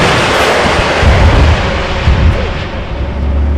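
A loud blast booms and fades.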